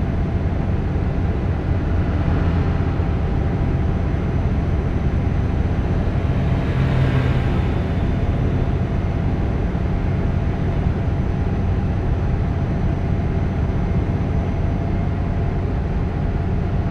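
A truck engine hums low and steadily.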